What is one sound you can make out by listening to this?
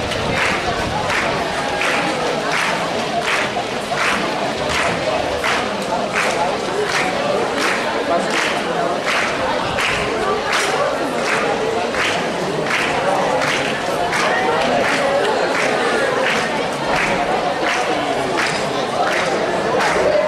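A marching band drums a steady beat in the distance.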